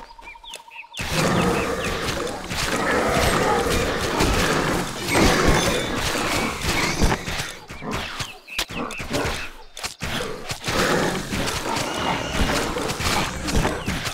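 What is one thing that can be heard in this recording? Weapons clash and creatures snarl in a noisy fight.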